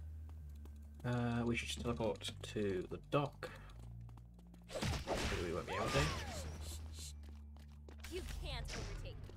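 Magic blasts zap and whoosh in quick bursts.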